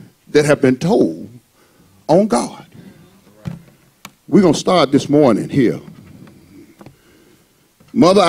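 A man preaches with animation into a microphone, in short bursts with pauses, in a slightly echoing room.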